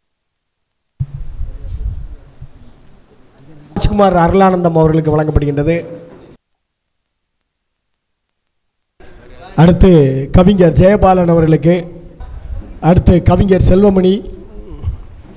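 A man speaks through a microphone, amplified in a room.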